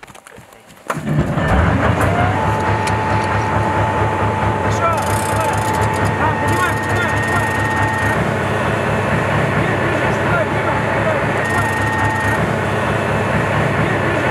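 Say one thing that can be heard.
A tracked vehicle's engine idles with a steady low rumble.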